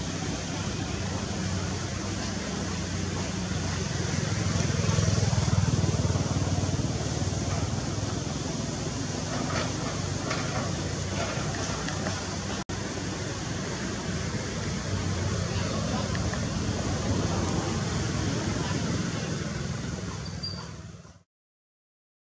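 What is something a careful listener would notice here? Excavator diesel engines rumble and whine steadily nearby.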